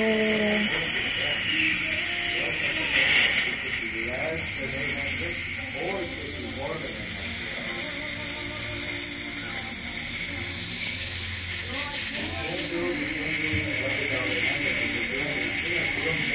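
A dental suction tube hisses and gurgles steadily.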